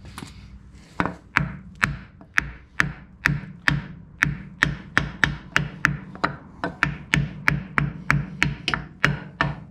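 A hammer taps rapidly and steadily on a wooden block.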